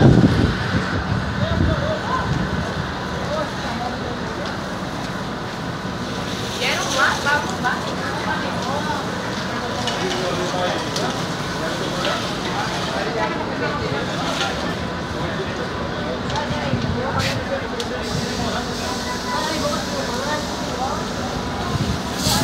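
Flames crackle and roar from a burning bus.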